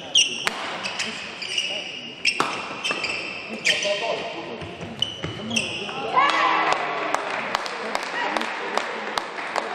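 Rackets strike a shuttlecock in a quick rally in an echoing hall.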